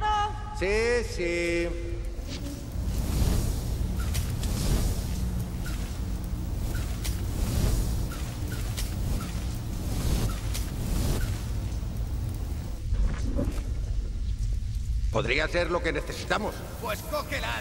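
Jet boots roar and hiss steadily.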